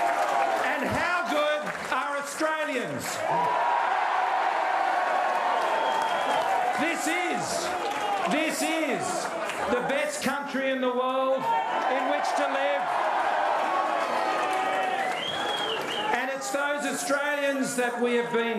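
A middle-aged man speaks into a microphone, heard over loudspeakers in a large hall.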